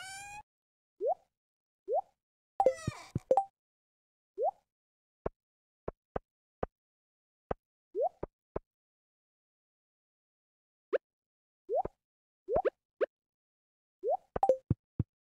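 Soft rising pops play as menu items are picked.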